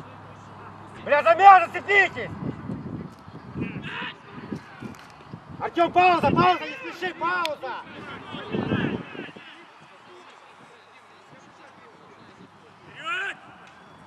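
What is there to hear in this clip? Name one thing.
Young men shout to each other across an open field outdoors.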